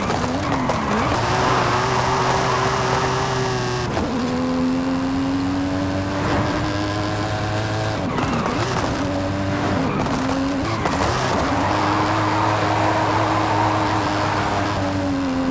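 Car tyres screech and squeal on the road.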